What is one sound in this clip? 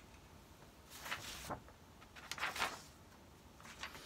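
A sheet of paper rustles.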